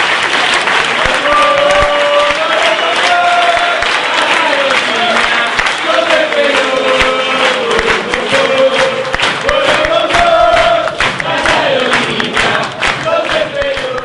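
A crowd chants loudly in unison.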